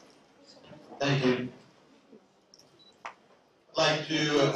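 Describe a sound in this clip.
A second man speaks into a microphone, heard through loudspeakers.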